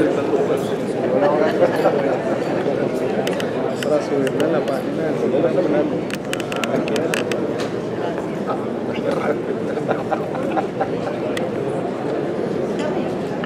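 A string quartet plays in a large echoing hall.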